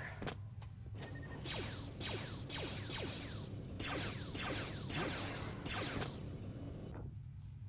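A blaster rifle fires laser bolts again and again with short zapping sounds.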